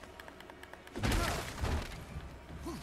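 Wooden branches crash and splinter.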